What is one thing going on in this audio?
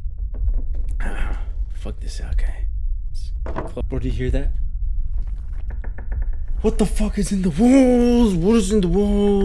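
A young man talks into a close microphone with animation, his voice rising and drawn out.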